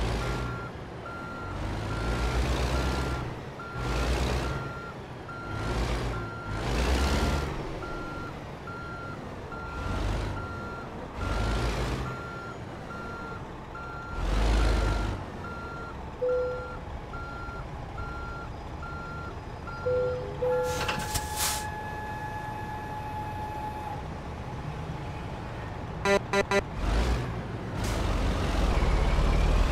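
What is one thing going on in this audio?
A truck's diesel engine idles and revs in bursts.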